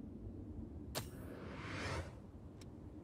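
A rising whooshing chime swells and stops.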